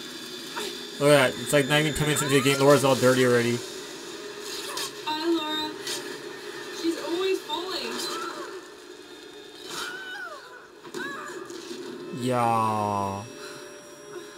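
A young woman groans and gasps with effort.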